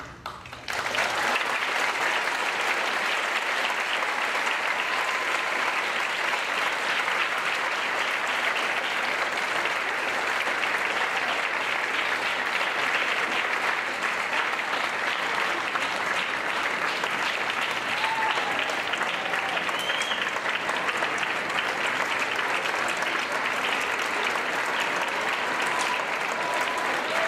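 A large concert band plays a lively tune in a big echoing hall.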